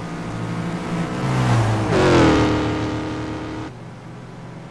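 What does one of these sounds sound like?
A racing car engine whines past at speed.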